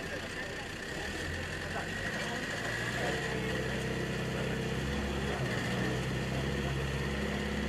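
A small vehicle engine hums steadily at idle.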